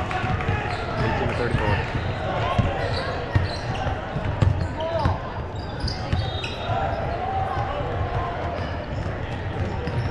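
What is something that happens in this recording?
Spectators chatter and call out in the stands.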